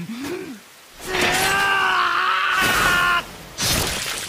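A man screams loudly in anguish.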